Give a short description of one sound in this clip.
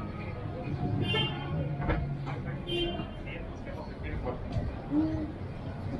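Footsteps tap on a pavement.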